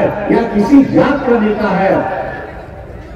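An elderly man speaks firmly into a microphone over loudspeakers in a large open space.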